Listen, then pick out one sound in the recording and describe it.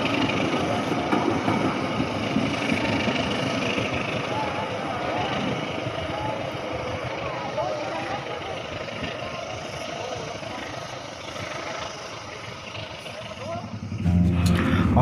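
A train rumbles along the tracks and slowly fades into the distance.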